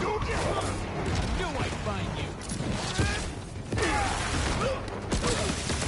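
Punches land with heavy thuds in a fight.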